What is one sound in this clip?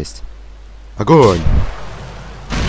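A rocket launcher fires.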